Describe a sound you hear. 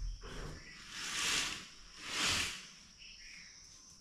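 A mosquito net rustles as it is pulled aside.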